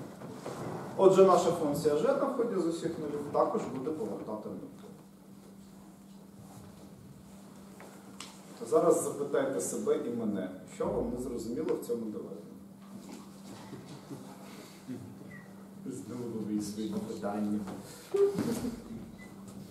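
A man speaks calmly, as if lecturing, in a room with a slight echo.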